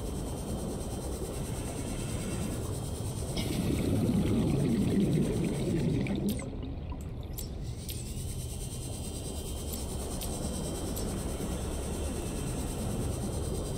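A low underwater engine hum drones steadily.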